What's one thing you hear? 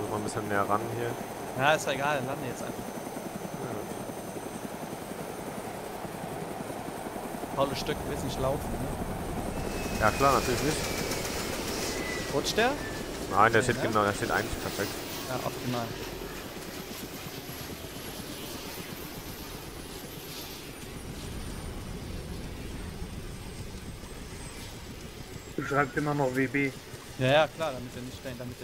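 A helicopter's rotor thumps and whirs steadily nearby.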